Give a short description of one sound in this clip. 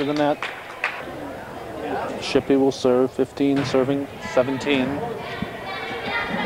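A volleyball is struck with sharp smacks in an echoing gym.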